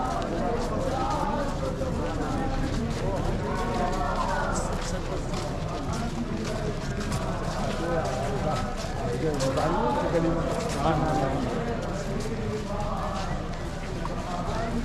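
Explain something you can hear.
Footsteps shuffle on pavement as many people walk.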